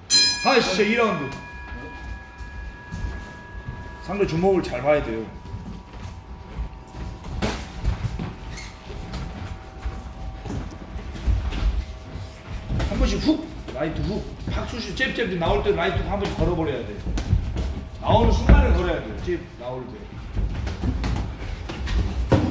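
Feet shuffle and squeak on a padded floor.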